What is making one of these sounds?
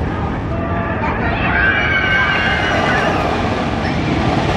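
Riders on a roller coaster scream in the distance.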